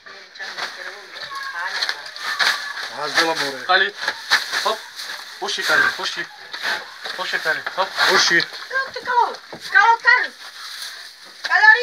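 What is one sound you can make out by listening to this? A pig grunts and squeals close by.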